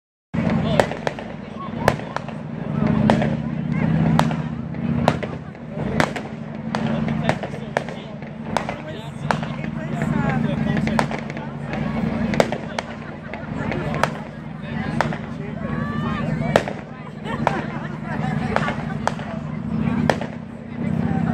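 Fireworks bang and pop in the distance, again and again.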